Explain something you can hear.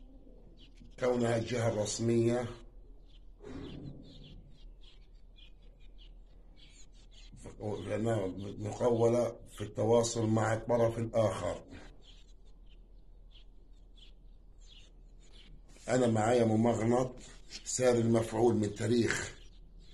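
An elderly man sings slowly and with feeling, close by, pausing between phrases.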